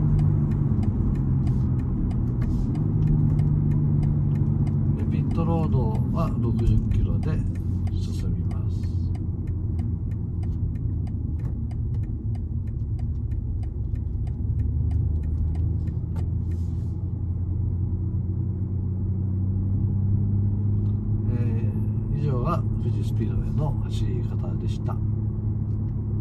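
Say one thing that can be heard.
Raindrops patter on a car windscreen.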